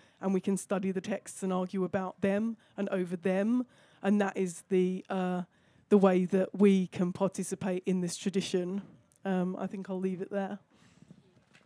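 A young woman speaks calmly and close into a microphone.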